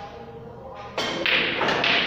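A cue knocks a ball.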